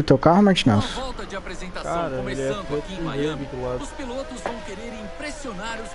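Racing car engines rev and whine.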